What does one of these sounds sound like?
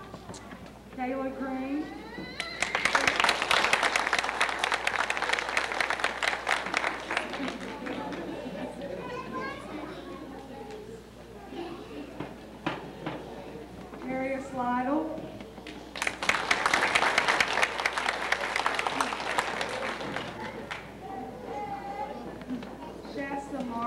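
A young girl speaks into a microphone, heard through a loudspeaker.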